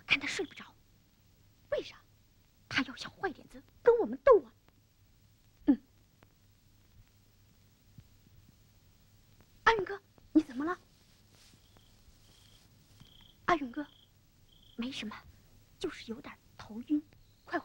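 A young boy speaks quietly and anxiously, close by.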